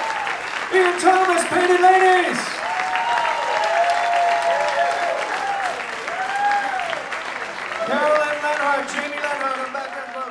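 Several women sing together into microphones.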